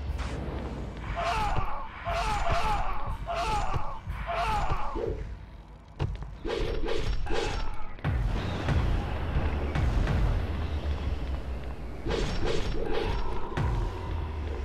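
A whip cracks and lashes repeatedly.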